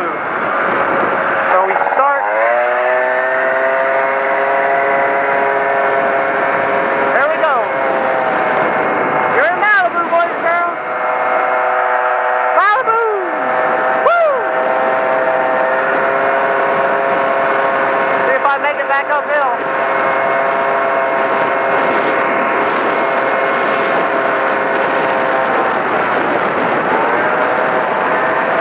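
A motorcycle engine hums steadily, rising and falling in pitch as it shifts gears.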